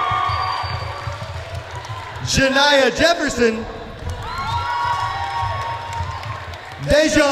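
A crowd of teenagers cheers and shouts in a large echoing hall.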